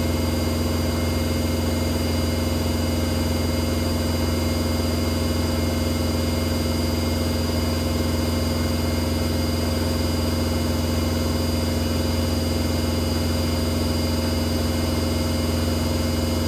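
Water swishes and sloshes inside a washing machine drum.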